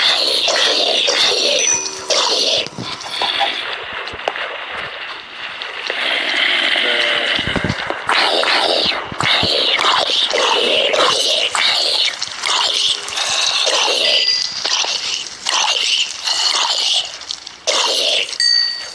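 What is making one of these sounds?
A boy talks excitedly into a nearby microphone.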